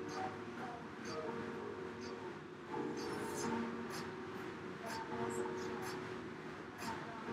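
An air bike's fan whirs steadily as someone pedals hard.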